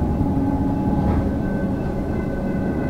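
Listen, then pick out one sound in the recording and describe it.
A level crossing bell rings.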